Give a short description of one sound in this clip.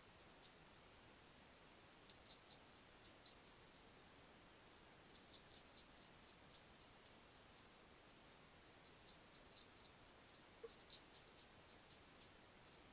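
A hedgehog munches food from a dish with soft crunching clicks, close by.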